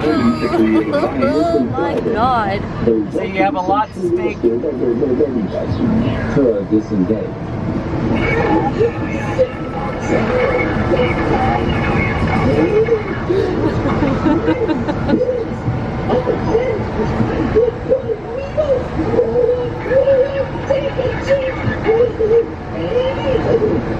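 A woman shouts and taunts loudly close by.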